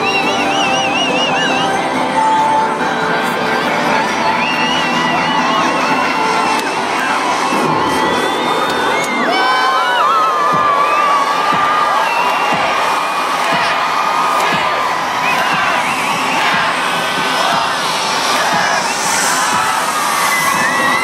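Loud electronic music plays through large outdoor loudspeakers.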